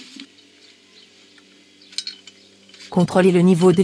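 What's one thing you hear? A wheel nut scrapes as it is turned by hand.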